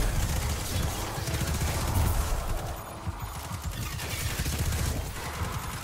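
Rapid energy gunfire crackles and booms.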